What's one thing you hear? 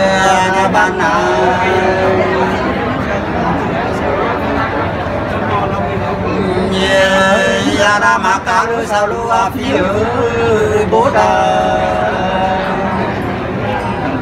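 A second middle-aged man sings along close by.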